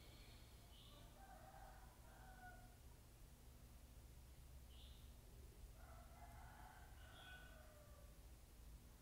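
A man speaks quietly and calmly, close by.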